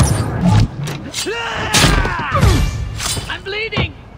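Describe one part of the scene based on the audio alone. A knife stabs with a wet thud.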